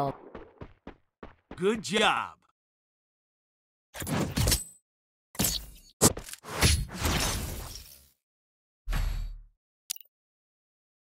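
Short bursts of video game sound effects play.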